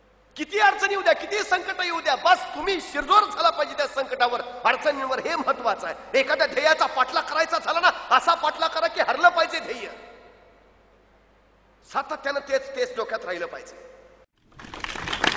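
A man speaks forcefully and with animation into a microphone.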